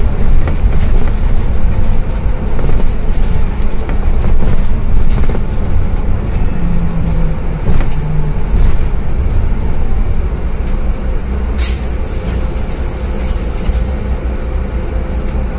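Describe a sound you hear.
The bus rattles and creaks as it drives along.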